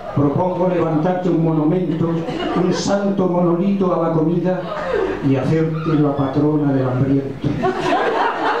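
A middle-aged man sings slowly into a microphone, holding long notes.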